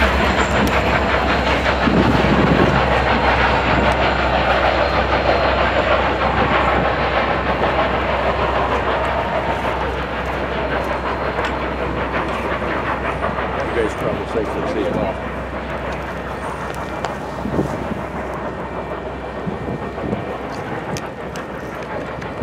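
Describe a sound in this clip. A passenger train rumbles and clatters past on the tracks, slowly fading.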